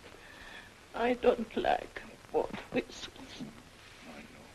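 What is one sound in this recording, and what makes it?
An elderly woman speaks tearfully and brokenly, close by.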